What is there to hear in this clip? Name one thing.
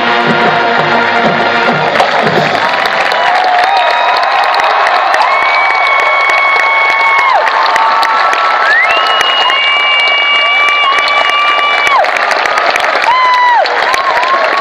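A crowd cheers and whistles from the stands.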